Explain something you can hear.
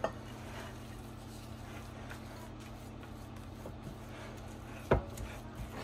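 A spatula stirs thick batter in a glass bowl.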